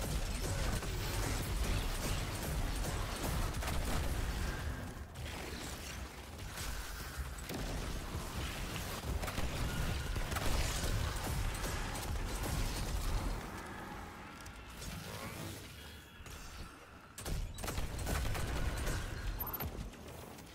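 Rapid gunfire and explosions crackle and boom in a game.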